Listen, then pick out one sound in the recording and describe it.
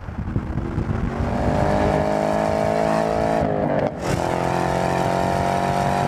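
A car engine drones steadily, heard from inside the car.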